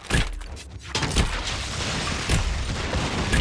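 A magic blast crackles and booms.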